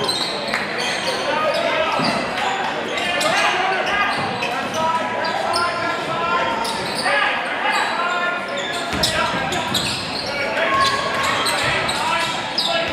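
A crowd murmurs and calls out in a large echoing gym.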